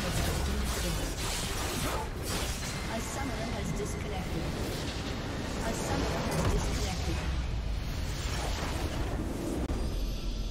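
Game spell effects crackle and whoosh as a building is destroyed.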